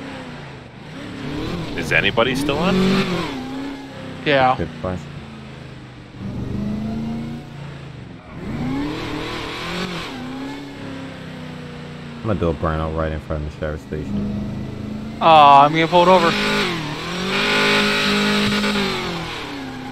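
Car tyres screech while the car drifts around corners.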